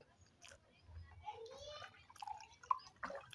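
Fizzy soda pours into a glass.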